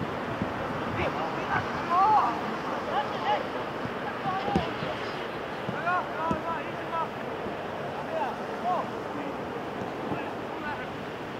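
Young players shout to each other from a distance outdoors.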